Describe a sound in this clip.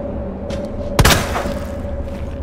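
A gunshot cracks once with a short echo.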